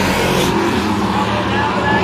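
Tyres squeal as a car spins out.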